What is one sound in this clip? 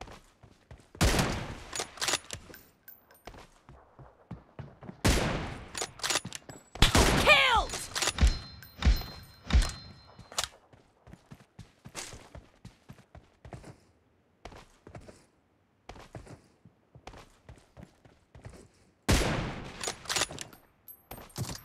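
Gunfire cracks in short, loud bursts.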